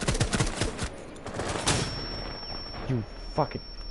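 A stun grenade bursts nearby.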